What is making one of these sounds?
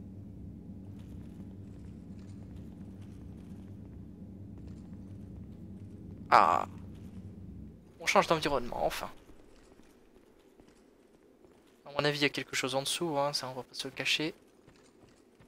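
Armoured footsteps clink on stone.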